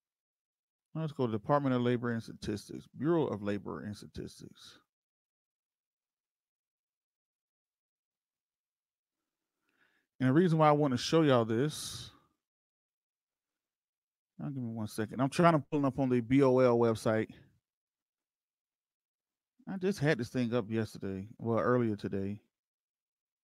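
A man speaks with animation, close into a microphone, in short bursts with silent gaps.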